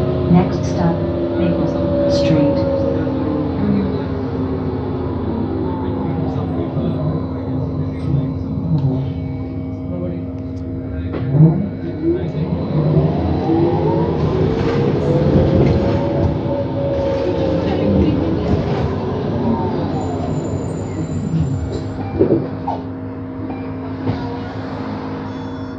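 An electric motor whines, rising and falling in pitch.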